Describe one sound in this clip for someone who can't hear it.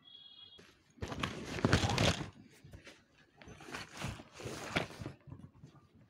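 A suitcase rustles and thumps as it is packed.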